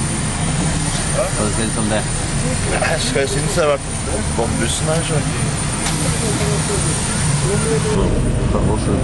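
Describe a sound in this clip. A young man talks close by, casually.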